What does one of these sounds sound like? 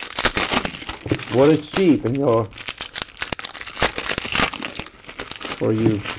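A plastic wrapper crinkles and rustles as hands tear it open.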